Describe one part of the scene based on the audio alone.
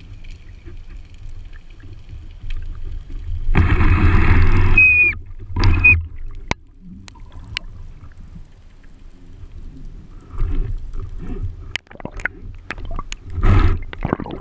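A low muffled rumble of water fills the background.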